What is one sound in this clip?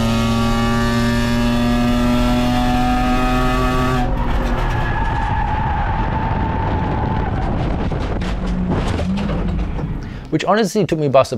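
A race car engine roars loudly at high revs from inside the cabin.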